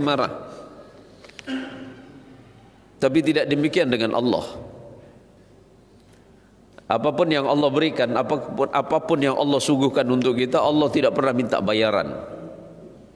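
A man speaks into a microphone with animation, his voice echoing in a room.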